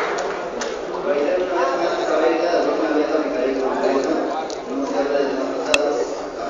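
A man speaks calmly through a microphone and loudspeaker in an echoing hall.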